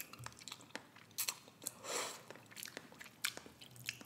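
A fork scrapes and clicks against a cup.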